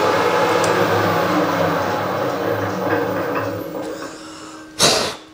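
A metal lathe whirs as a cutting tool bores into metal, with a rough grinding hiss.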